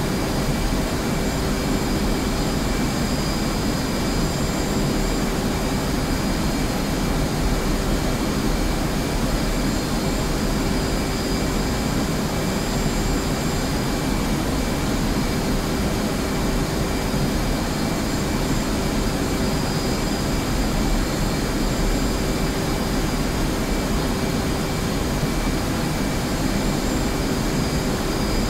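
A jet engine roars steadily with a constant high whine.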